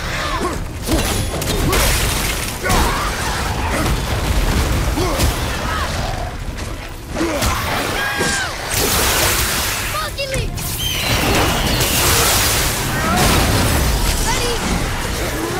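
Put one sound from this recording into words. Heavy blows strike with sharp thuds and clangs.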